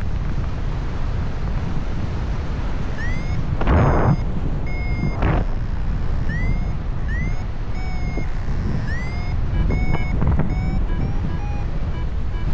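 Wind rushes steadily past, loud and blustery, high up outdoors.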